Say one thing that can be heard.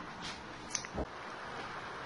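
A spoon scrapes and knocks against a metal pot.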